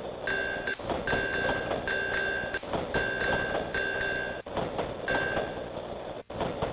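Electronic game beeps sound in quick bursts.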